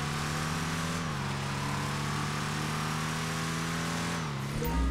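A race car engine revs and changes pitch on a turn.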